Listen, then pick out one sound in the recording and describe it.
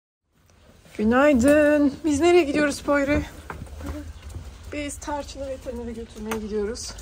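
A young boy talks with excitement nearby.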